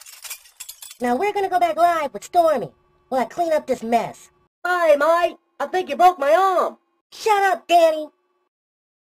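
A young woman speaks angrily and fast.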